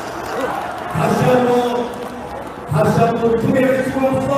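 Many voices sing together loudly in a crowd.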